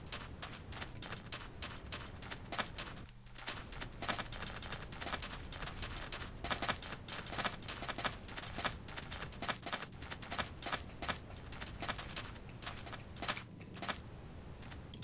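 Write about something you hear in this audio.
Footsteps crunch softly on sand at a steady walking pace.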